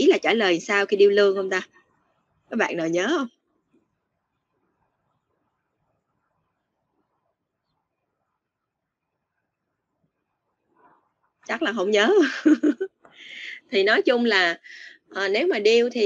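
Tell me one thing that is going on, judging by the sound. A young woman speaks calmly over an online call, pausing in between.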